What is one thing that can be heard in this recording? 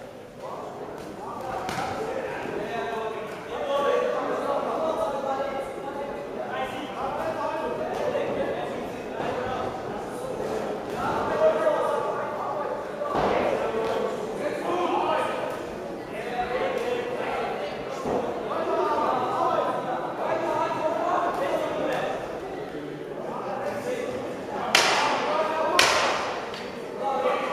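Spectators shout and call out in an echoing indoor hall.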